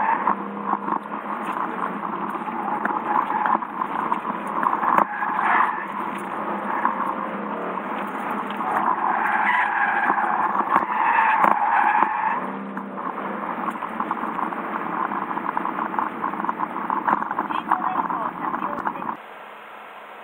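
A car engine roars and revs up and down from inside the car.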